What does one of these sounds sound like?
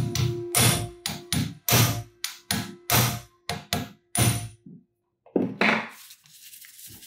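A power screwdriver whirs in short, repeated bursts close by.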